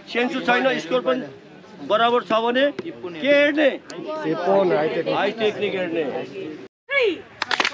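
A man speaks loudly to a group outdoors.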